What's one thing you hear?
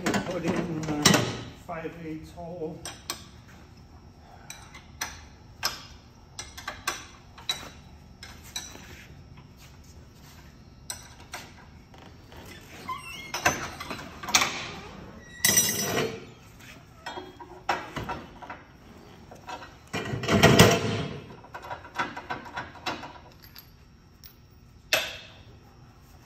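A metal ironworker machine clanks and thumps as it cuts steel.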